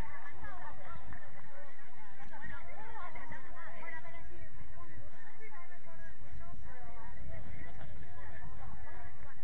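Young girls shout and call to one another across an open outdoor field.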